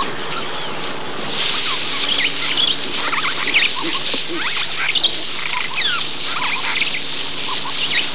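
A man strikes an elephant with a stick.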